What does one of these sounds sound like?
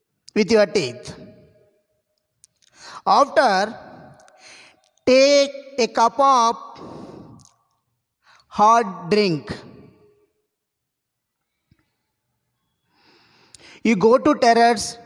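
A young man speaks loudly and forcefully into a headset microphone, in short bursts with pauses.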